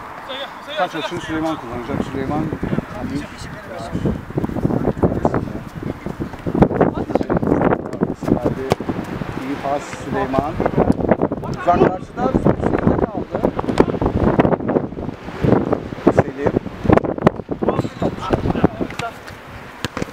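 Men shout to each other outdoors during a football match.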